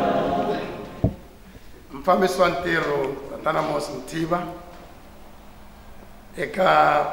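A man speaks at a lectern through a microphone, his voice carrying over a loudspeaker.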